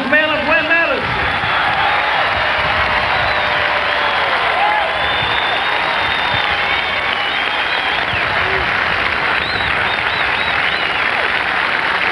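A large crowd murmurs and chatters in a stadium.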